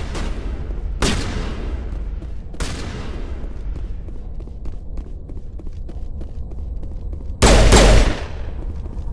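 Gunfire bursts loudly in short volleys.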